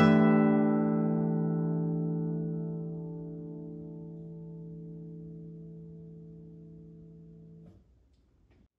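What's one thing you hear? A guitar chord rings out and slowly fades.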